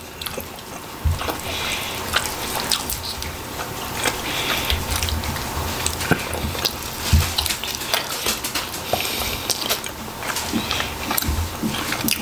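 Hands tear apart cooked meat and bones.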